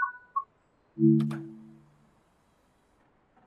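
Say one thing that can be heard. Train doors thud and hiss open.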